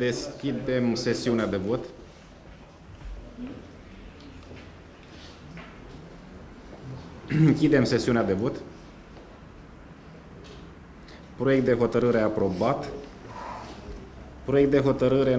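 A man speaks through a microphone in a large room, in bursts with pauses.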